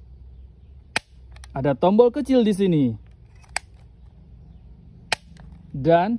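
A plastic toy button clicks sharply a few times.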